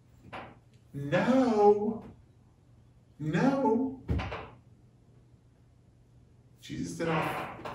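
A middle-aged man speaks calmly and clearly into a nearby microphone, pausing between phrases.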